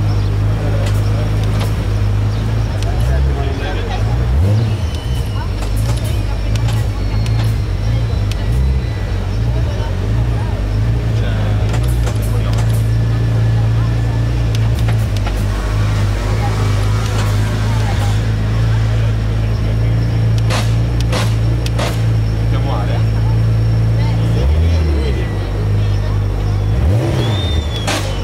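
A race car engine idles with a deep, loud rumble.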